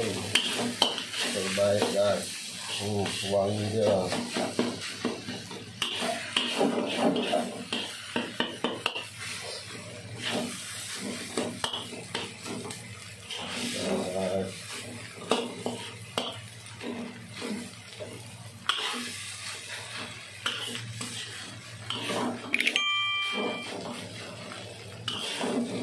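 A metal spatula scrapes and clatters against a wok.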